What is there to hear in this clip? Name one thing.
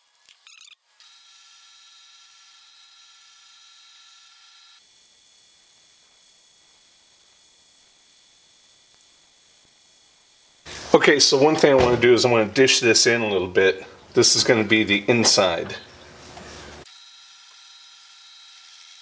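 A small lathe motor runs with a steady high whine.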